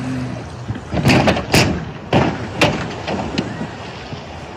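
A car rolls over with several loud, heavy thuds.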